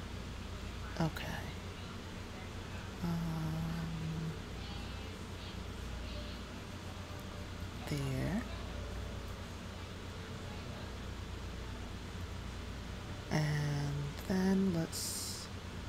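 A young woman speaks calmly into a close microphone in short bursts.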